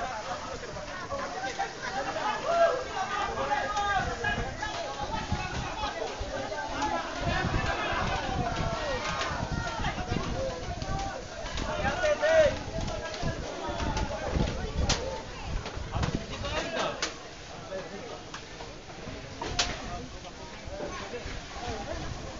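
Water sprays hard from a fire hose.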